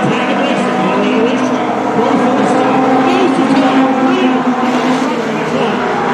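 A crowd cheers.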